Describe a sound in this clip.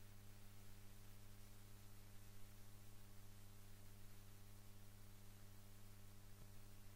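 A vinyl record spins on a turntable with a soft, steady hiss.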